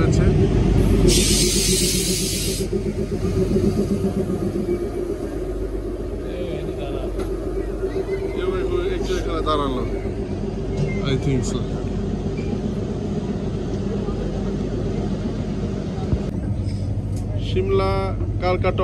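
A diesel engine drones steadily close by.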